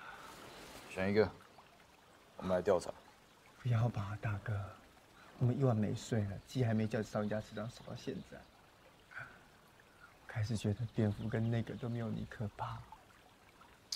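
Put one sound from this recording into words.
Another young man speaks with animation close by.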